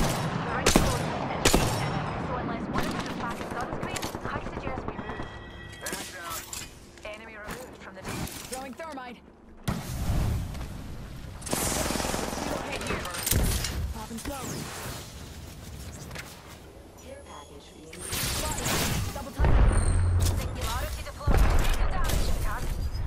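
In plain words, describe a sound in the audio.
Sharp gunshots crack in bursts.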